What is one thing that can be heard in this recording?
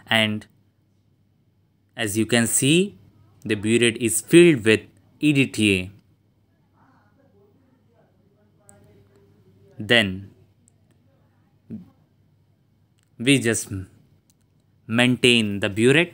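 A young man speaks calmly and close by, in short bursts.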